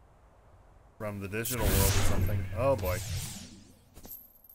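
An electric blast crackles and booms.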